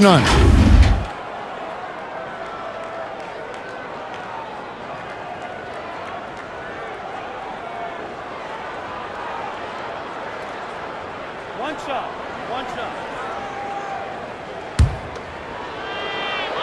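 A large crowd murmurs in a big echoing arena.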